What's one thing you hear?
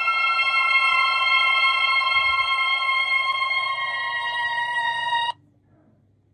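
Tinkly music plays from a tablet's speaker, then stops.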